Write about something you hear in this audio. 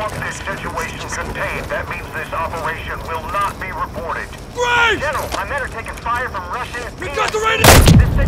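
A man speaks urgently over a crackling radio.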